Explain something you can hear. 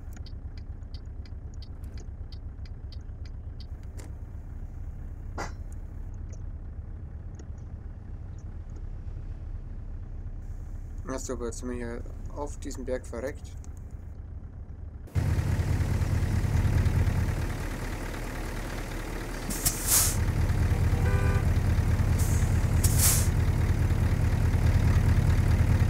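A truck engine rumbles low and steady, growing louder partway through.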